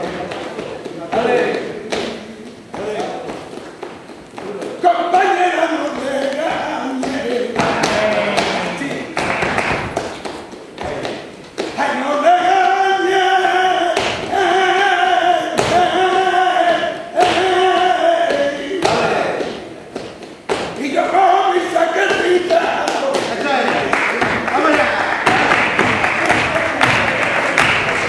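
A man sings loudly with passion.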